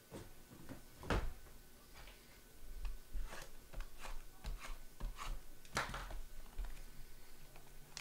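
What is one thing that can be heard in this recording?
Cards in rigid plastic holders tap against a table.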